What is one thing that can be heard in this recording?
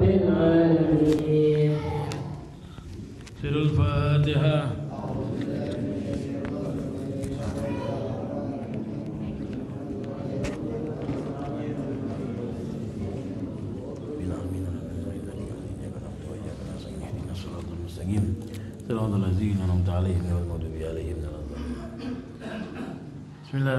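A man chants loudly through a microphone in an echoing hall.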